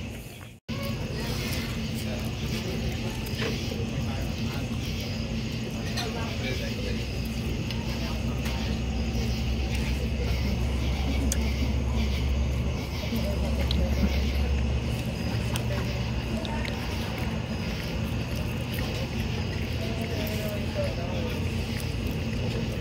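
A fork scrapes and clinks against a metal pan.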